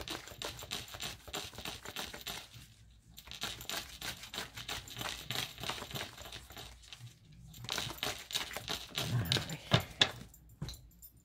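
Playing cards riffle and rustle as they are shuffled by hand.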